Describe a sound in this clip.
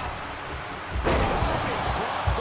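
A heavy body slams down onto a wrestling ring mat with a loud thud.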